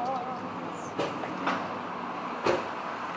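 A fuel nozzle clicks and knocks against a car.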